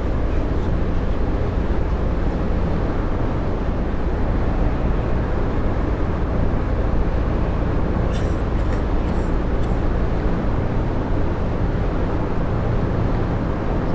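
A bus engine hums steadily as it drives along a road.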